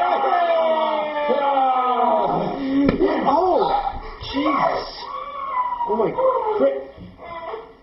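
A young man shouts and laughs loudly nearby.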